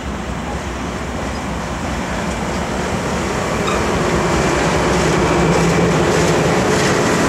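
Train cars rumble and clatter past on the tracks close by.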